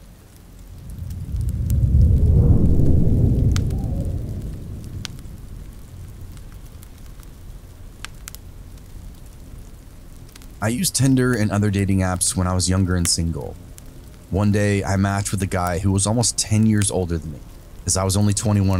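A fire crackles and pops softly.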